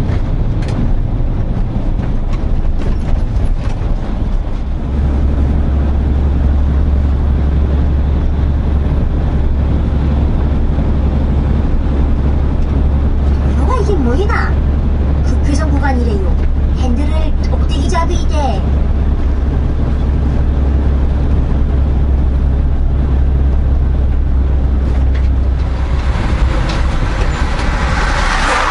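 A truck engine rumbles low and steady from inside the cab.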